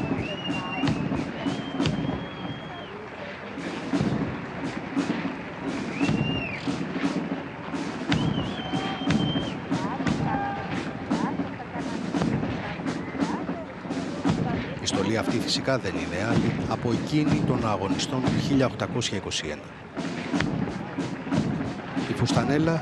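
Boots stamp on pavement in a steady marching rhythm.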